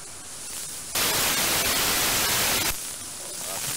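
A radio receiver gives a sudden loud burst of noise.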